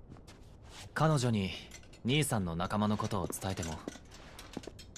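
A young man speaks gently and close by, asking a question.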